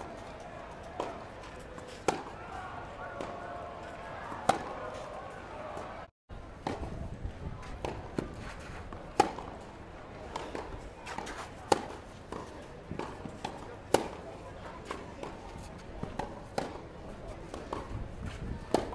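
Tennis balls bounce on a clay court.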